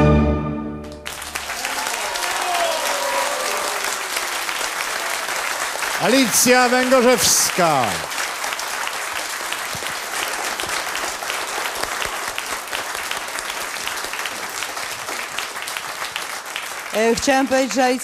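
A large audience applauds and cheers loudly.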